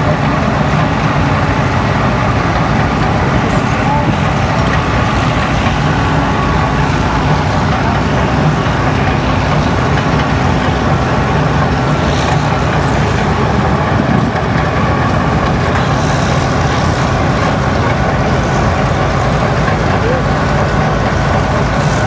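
A mining machine's diesel engine rumbles steadily nearby.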